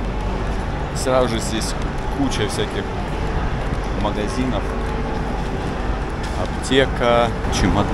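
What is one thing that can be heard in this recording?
A young man talks casually and close by.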